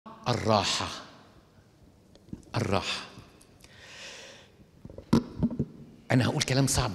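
An elderly man speaks with animation into a microphone in an echoing hall.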